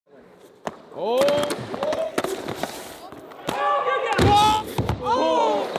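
A skateboard clacks and scrapes on hard concrete.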